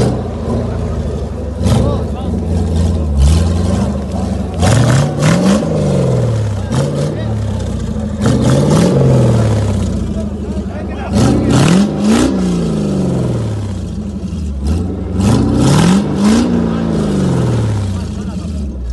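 An off-road buggy's engine revs hard in repeated loud bursts.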